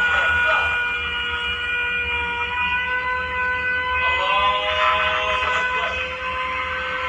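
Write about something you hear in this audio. Music with sustained tones plays steadily.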